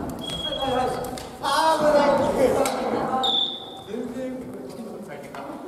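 Young men call out and talk loudly.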